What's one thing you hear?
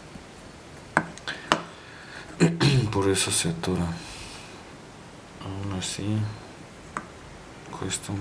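Small metal lock parts click and tap against a wooden board.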